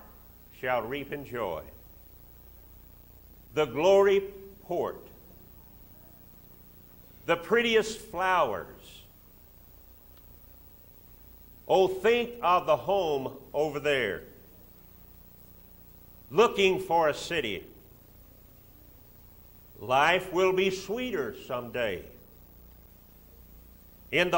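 An elderly man speaks slowly and deliberately into a microphone, with long pauses between phrases.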